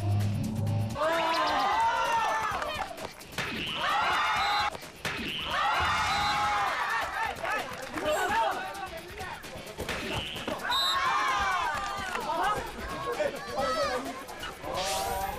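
A crowd of young people shouts and cheers excitedly outdoors.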